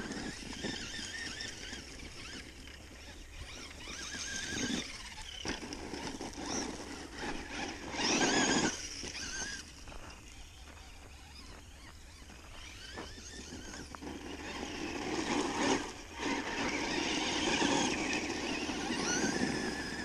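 A small remote-control car's motor whines in the distance.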